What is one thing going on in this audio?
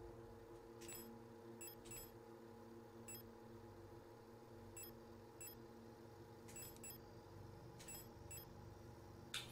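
Soft menu clicks tick now and then.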